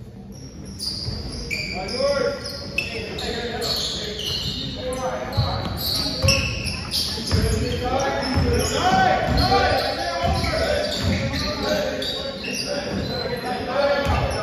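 Spectators talk and cheer nearby.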